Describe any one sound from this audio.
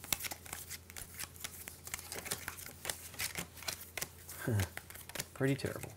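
Cardboard game pieces and cards click and tap on a wooden table.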